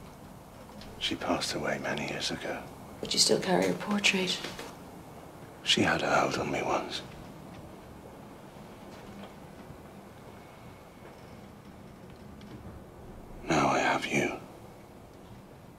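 A man speaks quietly and slowly, close by.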